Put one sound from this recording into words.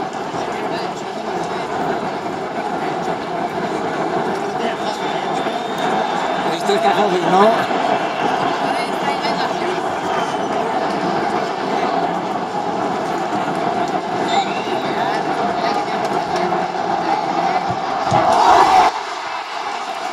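A large stadium crowd roars and chants steadily in the open air.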